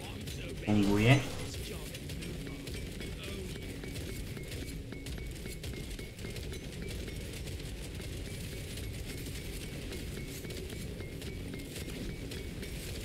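Keys on a keyboard click and clatter rapidly.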